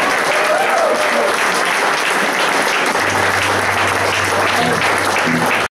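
A band plays loud rock with electric guitars and drums.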